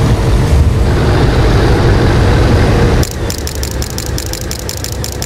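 A heavy truck engine rumbles deeply as a truck drives along.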